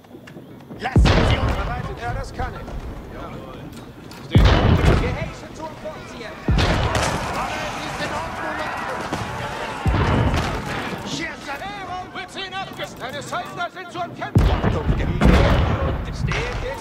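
Heavy explosions boom loudly several times.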